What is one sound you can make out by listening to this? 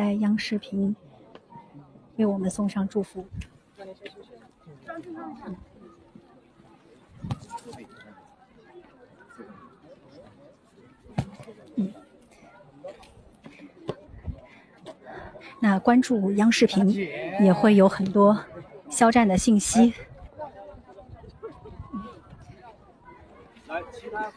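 A crowd of men and women talk over one another close by.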